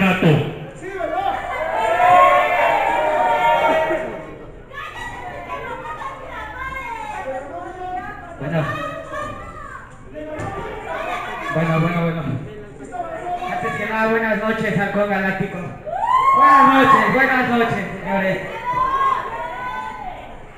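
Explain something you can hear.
A crowd shouts and cheers in an echoing hall.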